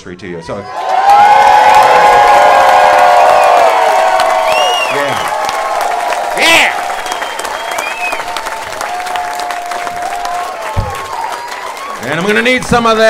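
An audience cheers and whoops loudly.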